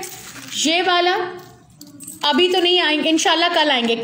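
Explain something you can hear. Metal jewellery jingles softly as it is handled.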